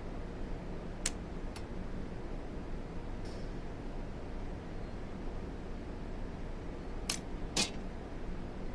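Hollow metal parts clank together now and then.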